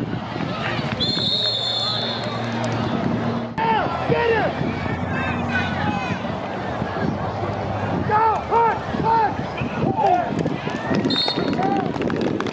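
A whistle blows shrilly.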